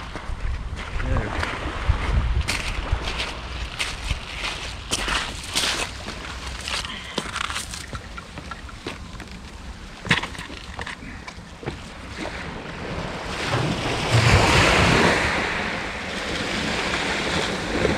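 Waves wash gently onto the shore.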